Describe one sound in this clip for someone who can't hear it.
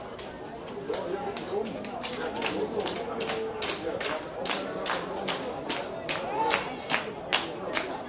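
Spectators clap their hands in a steady rhythm.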